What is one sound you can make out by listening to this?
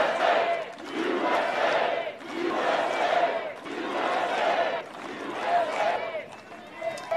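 A large crowd chants loudly in rhythmic bursts.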